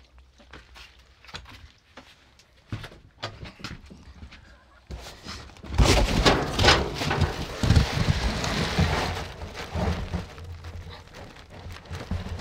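Rustling and handling noise rubs against a clip-on microphone.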